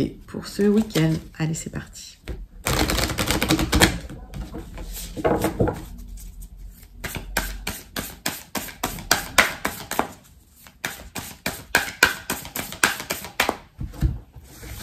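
Playing cards are shuffled and riffled with quick flicking and clicking sounds.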